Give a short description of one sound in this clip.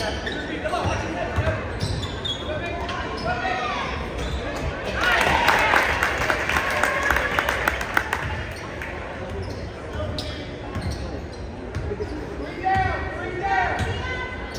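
A basketball thumps as it is dribbled.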